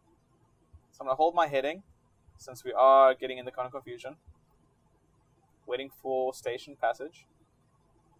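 A man speaks calmly over a headset microphone.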